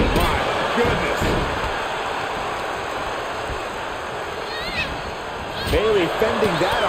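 Bodies thud onto a wrestling ring mat.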